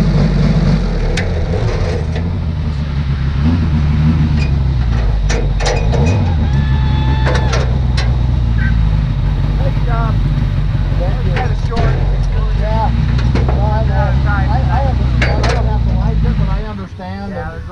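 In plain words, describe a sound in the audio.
A race car engine rumbles loudly at idle close by.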